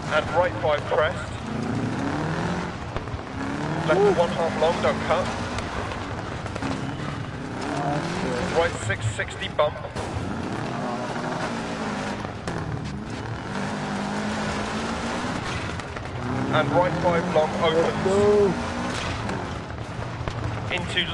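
A rally car engine revs hard, rising and falling as the gears change.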